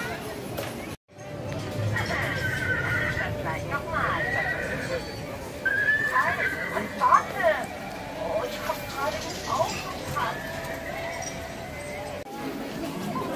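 A small ride car rolls along a rail track.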